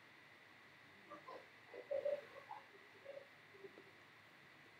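Cards shuffle and rustle in hands.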